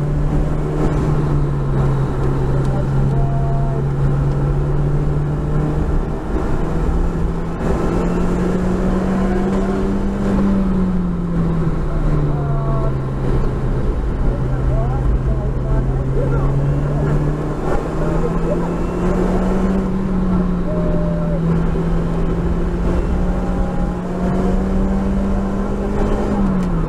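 Tyres hiss on a wet track.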